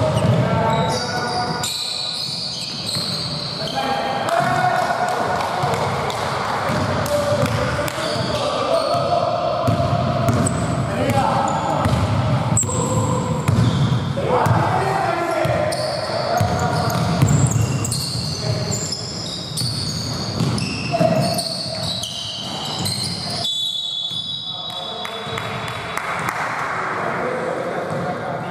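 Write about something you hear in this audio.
Basketballs bounce on a wooden court in a large echoing hall.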